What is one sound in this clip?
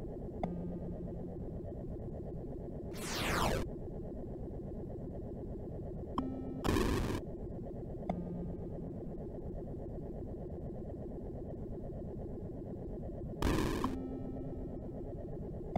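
Retro electronic game music hums and buzzes steadily.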